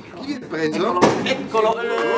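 A champagne cork pops.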